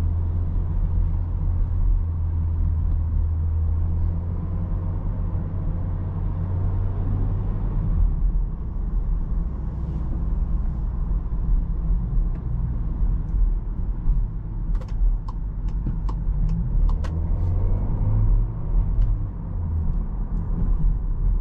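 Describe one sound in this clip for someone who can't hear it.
A car engine hums steadily, heard from inside the cabin.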